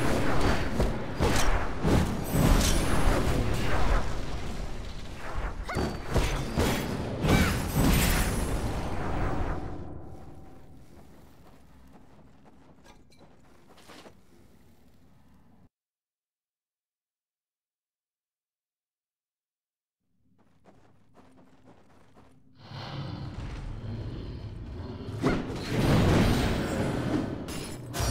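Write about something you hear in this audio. Weapons clash and magic blasts burst in a fierce fight.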